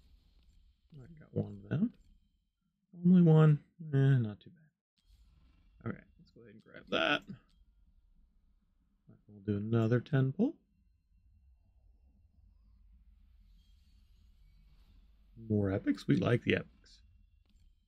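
A middle-aged man speaks casually into a close microphone, in short bursts.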